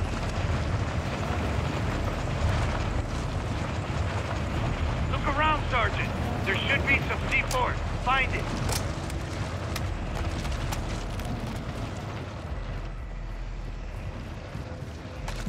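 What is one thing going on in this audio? Footsteps crunch steadily on hard ground and gravel.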